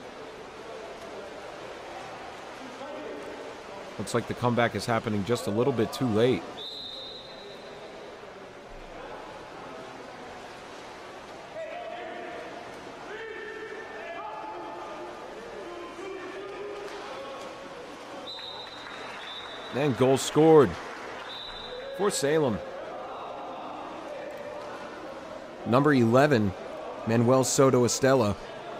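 Water splashes as swimmers thrash and kick.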